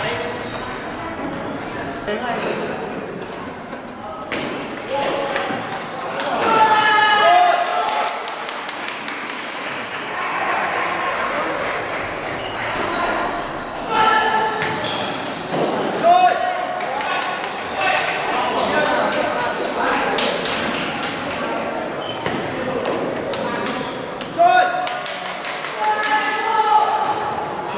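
A ping-pong ball clicks back and forth on paddles and a table.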